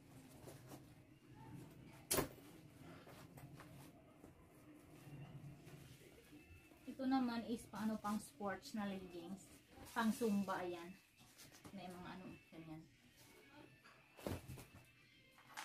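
Fabric rustles as a woman handles clothes.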